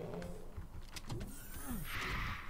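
A monster growls with a low, warbling roar.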